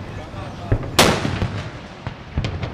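A large cannon fires with a loud, sharp boom close by.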